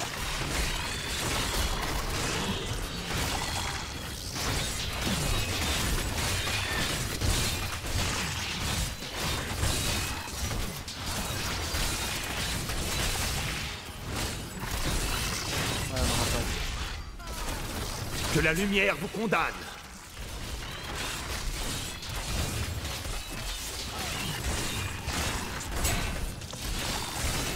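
Magic blasts and crackling spells burst again and again in a fierce fight.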